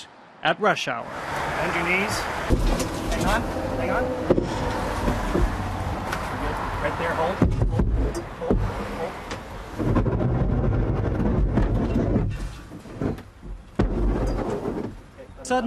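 A vehicle's engine rumbles low.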